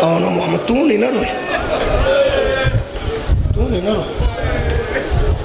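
A middle-aged man speaks with emotion into a microphone, heard through loudspeakers in a reverberant hall.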